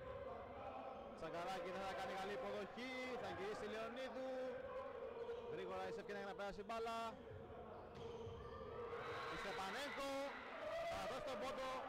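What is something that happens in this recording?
A volleyball is slapped hard over and over.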